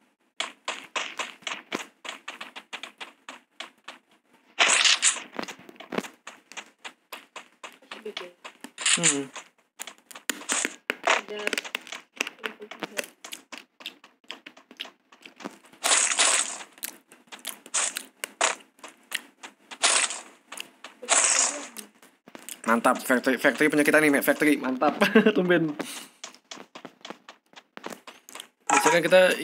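Quick footsteps patter steadily as a figure runs.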